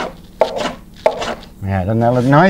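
A hand rubs and scrapes across a wooden plank.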